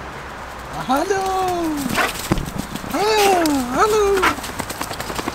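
A dog whines and yelps close by.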